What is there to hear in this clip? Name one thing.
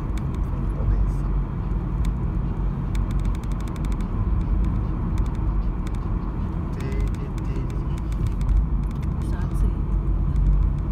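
Tyres roll on the road with a low rumble.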